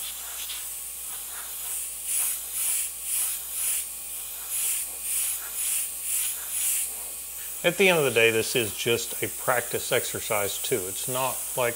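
An airbrush hisses in short, repeated bursts.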